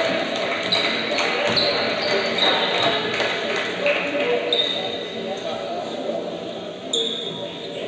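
Sneakers squeak on a court as players run.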